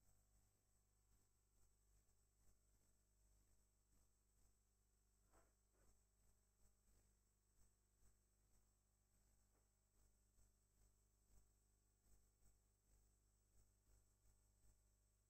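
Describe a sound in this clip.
Boxing gloves thud against each other and on bodies in quick punches.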